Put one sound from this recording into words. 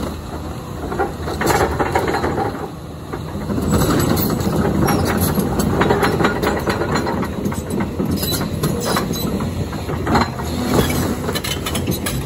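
Wood and debris crack and crash as an excavator tears at a house.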